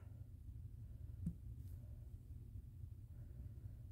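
A game chimes softly as a card is played.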